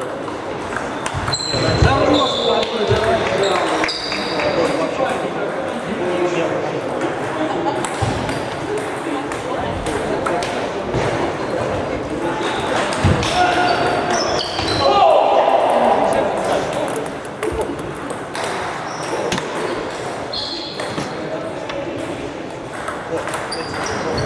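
Table tennis balls click against paddles and tables in a large echoing hall.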